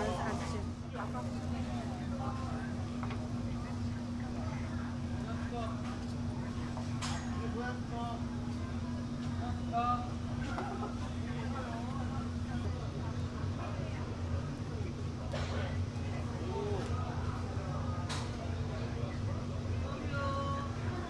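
Egg batter sizzles on a hot griddle.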